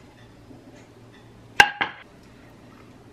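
A plate clinks down on a hard counter.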